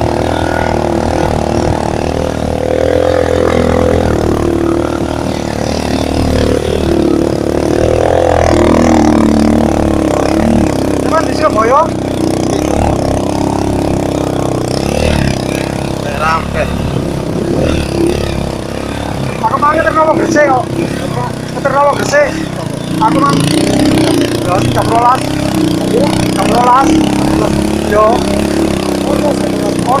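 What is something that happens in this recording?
A motorcycle engine rumbles steadily up close.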